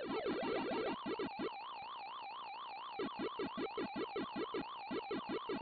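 A warbling 8-bit game siren tone rises and falls.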